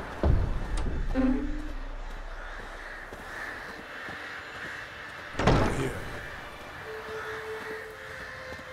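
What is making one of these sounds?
Footsteps crunch steadily on cobblestones.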